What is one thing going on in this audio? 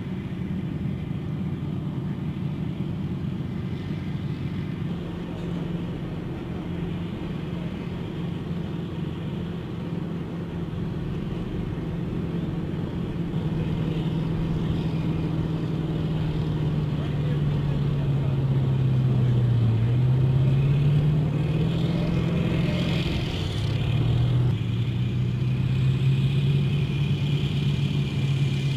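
Water churns and splashes behind an amphibious assault vehicle.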